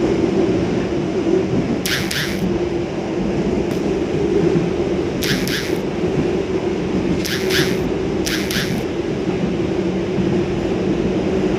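A train rumbles steadily along.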